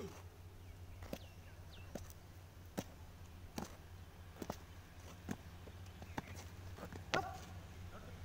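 Boots stamp and thud on hard dirt.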